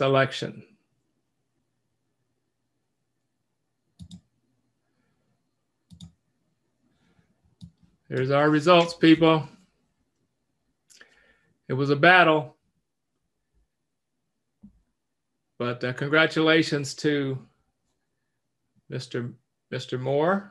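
An older man speaks calmly in bursts over an online call.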